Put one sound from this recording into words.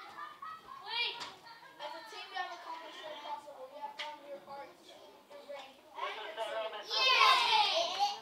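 A man speaks to children.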